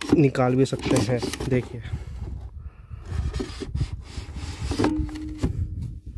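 A heavy battery knocks against its plastic housing as it is lifted.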